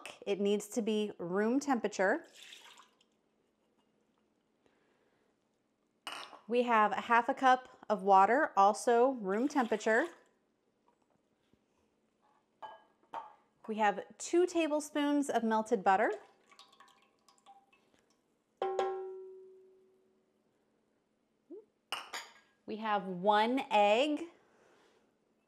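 A woman talks calmly and clearly, close by.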